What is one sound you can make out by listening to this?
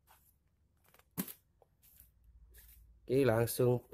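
A cardboard box flap is opened.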